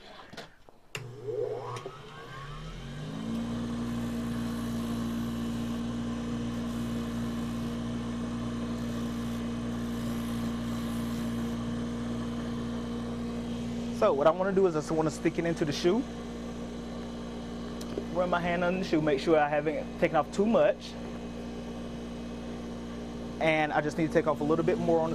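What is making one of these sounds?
An electric bench grinder motor starts up and hums steadily.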